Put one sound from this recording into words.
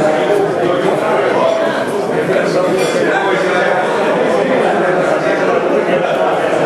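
Many men and women chatter loudly all around.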